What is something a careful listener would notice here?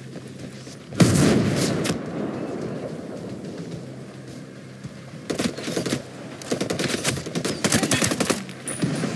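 Gunshots crack in rapid bursts nearby.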